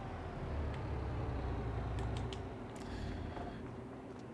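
A truck engine rumbles low.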